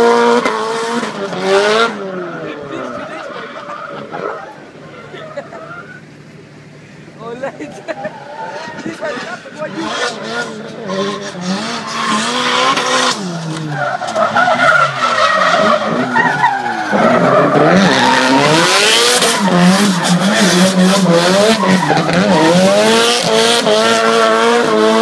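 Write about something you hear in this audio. A car engine revs loudly, rising and falling in pitch.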